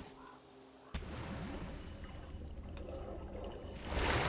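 A low, muffled underwater rumble fills the sound.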